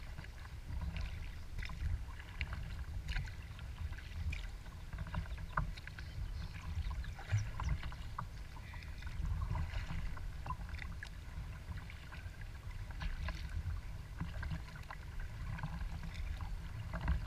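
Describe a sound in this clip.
Small waves lap and splash against a kayak's hull.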